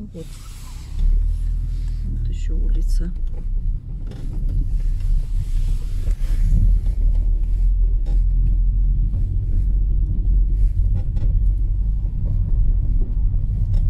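Tyres crunch over packed snow and slush.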